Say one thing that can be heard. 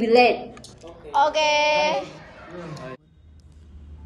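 A young woman sings out loudly.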